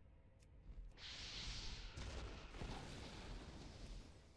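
A magical blast crackles and roars.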